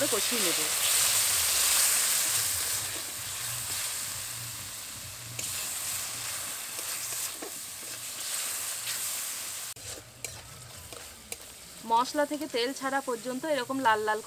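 A metal spatula scrapes against a metal pan.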